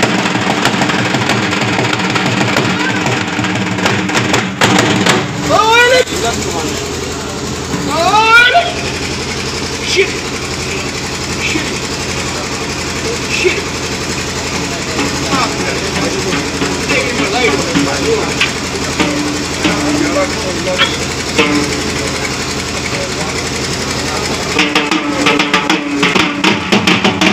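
A drum is beaten in a steady rhythm.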